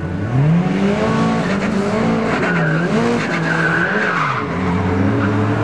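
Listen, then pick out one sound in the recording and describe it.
A car engine climbs in pitch and drops again as the gears change.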